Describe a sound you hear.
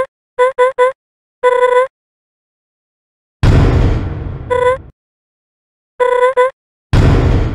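Short pitched beeping blips sound in quick bursts.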